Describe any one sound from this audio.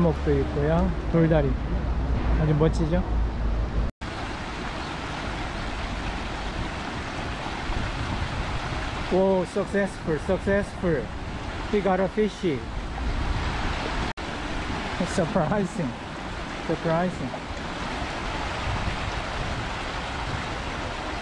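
Shallow water rushes and splashes steadily over rocks.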